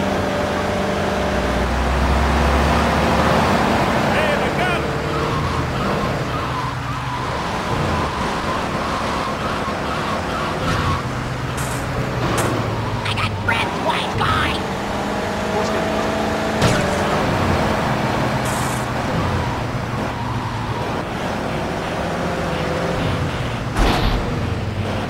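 A car engine drones steadily while the car drives.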